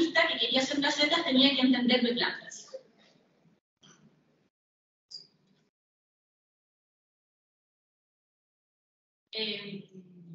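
A woman speaks into a microphone in a large room, heard through loudspeakers.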